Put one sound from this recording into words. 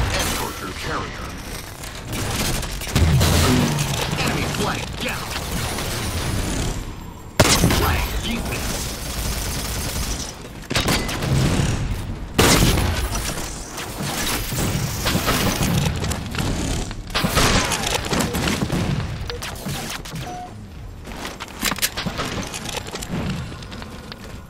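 Gunfire from a game's weapons crackles and booms throughout.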